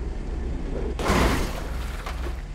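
A car lands hard with a heavy thud.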